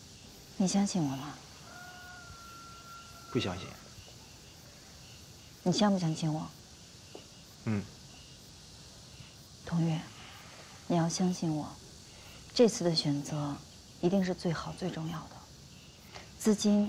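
A young woman speaks quietly and closely.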